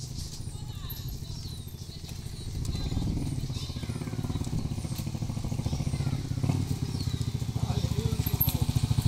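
Cattle hooves clop on a paved road.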